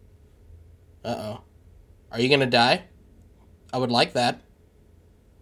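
A man talks close to a microphone in short, lively bursts.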